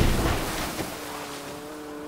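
A helicopter crashes into water with a loud splash.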